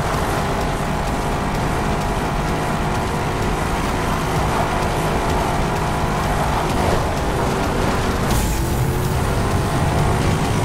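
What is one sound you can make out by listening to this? Tyres crunch and skid on gravel.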